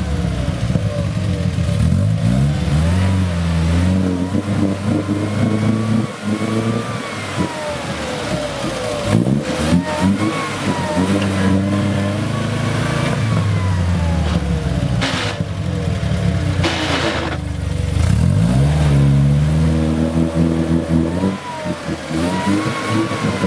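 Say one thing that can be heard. Tyres churn and splash through mud and water.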